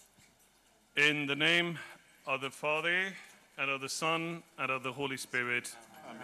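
A man speaks calmly into a microphone, heard over a loudspeaker.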